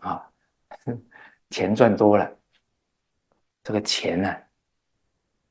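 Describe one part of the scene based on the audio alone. An elderly man speaks calmly into a close microphone, in short phrases.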